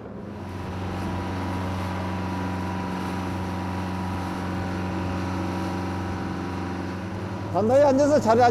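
Water rushes and churns in a boat's wake.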